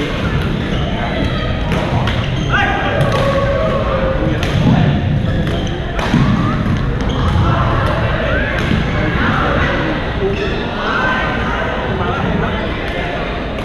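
Voices of young men call out across a large echoing hall.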